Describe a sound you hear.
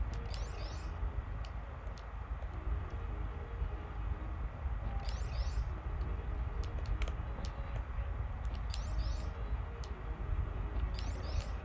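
Short, high video game sound effects chirp every few seconds.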